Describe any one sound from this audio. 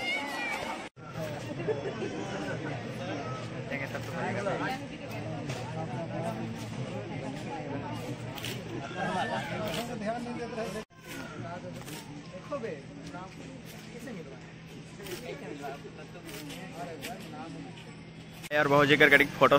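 A crowd of men and women chatters in the background.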